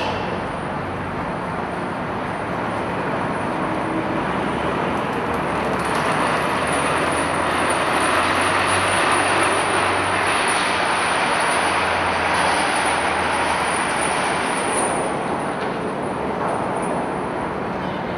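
Diesel engines of tracked amphibious assault vehicles rumble, echoing in a large steel hold.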